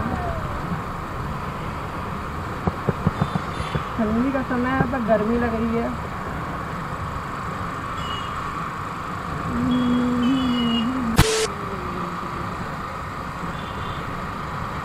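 Wind rushes past, outdoors.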